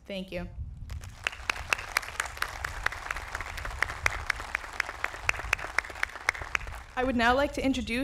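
A large crowd applauds outdoors.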